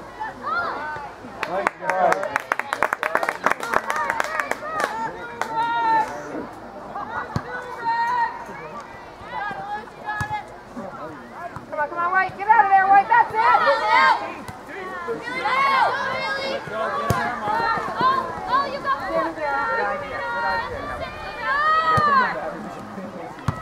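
Spectators shout and cheer from the sidelines outdoors.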